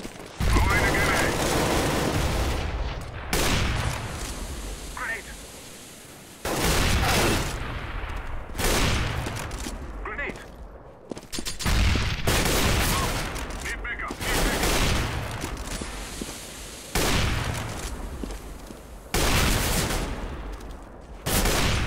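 Loud rifle shots crack out every few seconds, each followed by a ringing echo.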